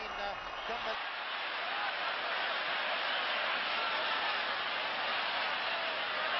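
A large stadium crowd roars and cheers.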